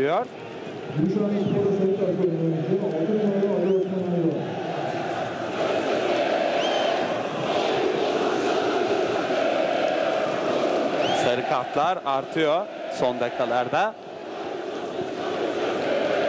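A crowd murmurs and chants in an open-air stadium.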